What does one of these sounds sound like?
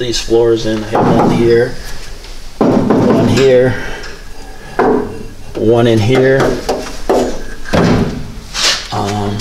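A man talks calmly and close by, explaining.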